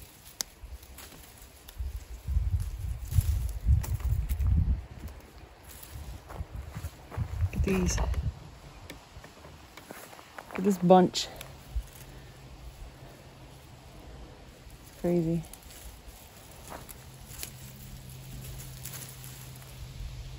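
Leafy plant stems rustle as hands pull at them.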